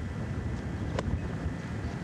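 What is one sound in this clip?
A golf club swings through sand and strikes a ball with a sharp thud.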